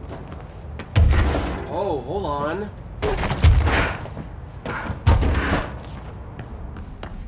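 Heavy thuds sound as a person climbs and drops down.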